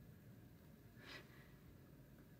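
A young woman gasps softly close by.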